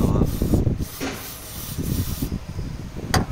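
An aerosol can sprays with a steady hiss.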